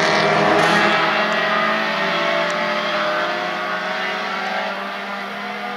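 A race car engine fades into the distance.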